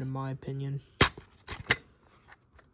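A plastic case clicks as it snaps open.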